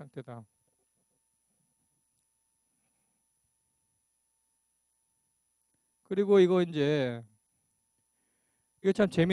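A man lectures through a microphone, speaking in short bursts with pauses.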